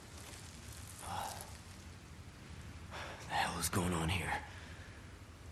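A woman speaks weakly and hoarsely, close by.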